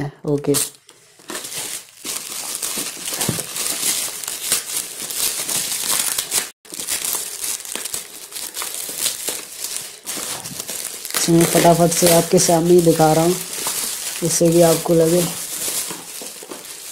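Bubble wrap crinkles and rustles up close.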